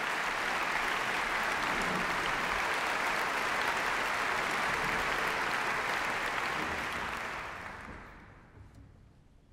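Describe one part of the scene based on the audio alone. An audience applauds in a large hall and the applause fades away.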